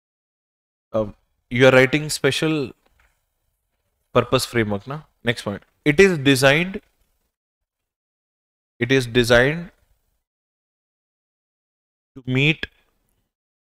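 A man lectures with animation into a close microphone, in short bursts with pauses.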